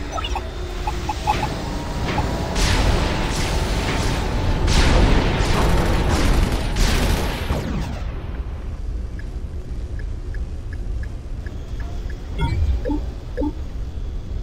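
Soft electronic blips sound as menu selections change.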